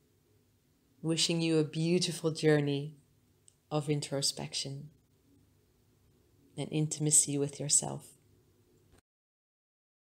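A woman speaks calmly and softly nearby.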